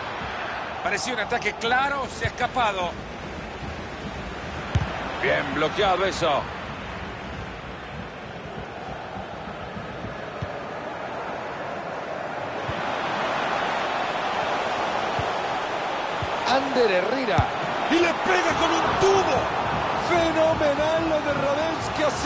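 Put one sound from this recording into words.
A large crowd murmurs and chants steadily, swelling into a loud roar.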